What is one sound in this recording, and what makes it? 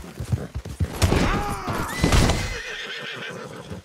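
A horse whinnies loudly.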